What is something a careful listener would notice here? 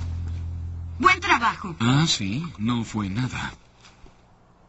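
A man speaks calmly in a low voice, close by.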